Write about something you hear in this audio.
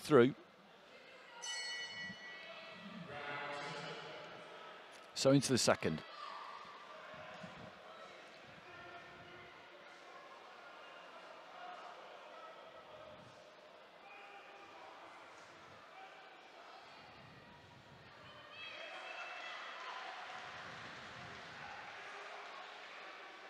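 A large indoor crowd murmurs in an echoing hall.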